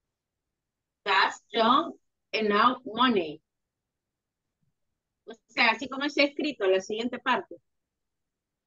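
A woman speaks calmly through an online call, in short phrases.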